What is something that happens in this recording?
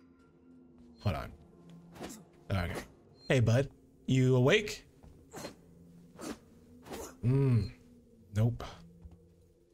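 A man speaks calmly in short phrases nearby.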